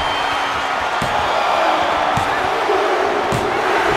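A referee slaps the mat three times, slowly.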